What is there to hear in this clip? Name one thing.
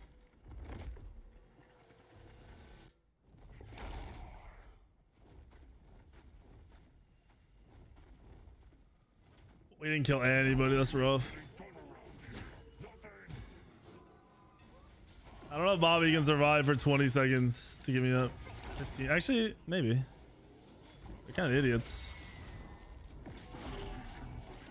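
Game fight effects clash and whoosh.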